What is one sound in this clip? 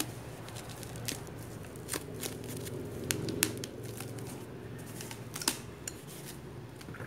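A foam fruit net crinkles and creaks as hands squeeze it.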